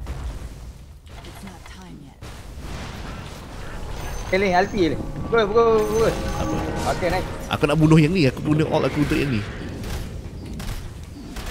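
Magic spells crackle and boom in a battle.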